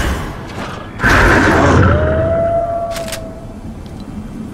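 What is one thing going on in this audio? A loud magical whoosh bursts and rings out with a rising chime.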